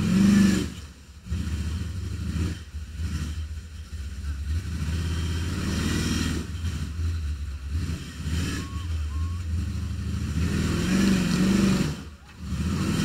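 A truck engine rumbles and revs while the truck climbs over rough ground.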